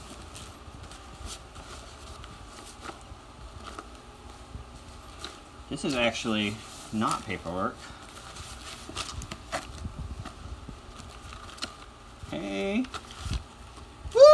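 Paper and cardboard rustle as a folder is handled and opened.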